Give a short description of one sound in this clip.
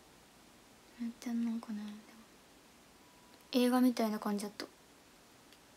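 A young woman speaks softly and briefly, close to the microphone.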